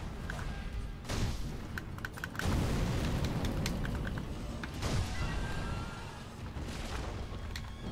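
Sword blows clash and strike.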